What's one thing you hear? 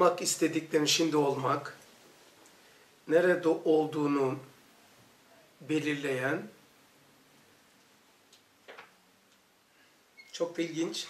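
An elderly man speaks calmly and clearly in short phrases, close to a microphone.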